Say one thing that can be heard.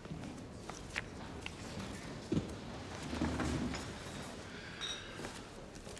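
A newspaper rustles as a man handles it.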